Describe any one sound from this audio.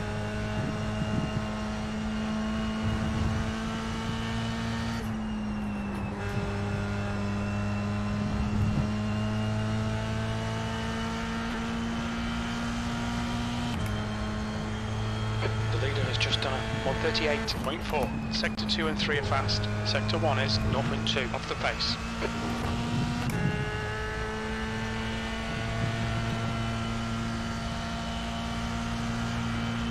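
A race car engine drones steadily, its pitch climbing and dropping with each gear change.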